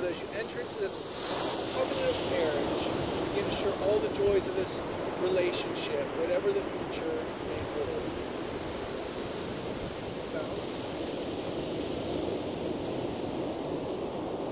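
Wind blows across a microphone outdoors.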